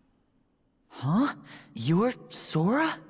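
A young man speaks in a surprised tone.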